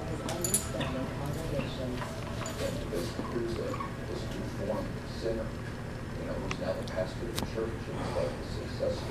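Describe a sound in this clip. A dog chews and gnaws on a rubber toy.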